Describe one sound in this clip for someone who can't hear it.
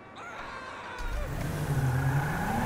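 A car engine starts.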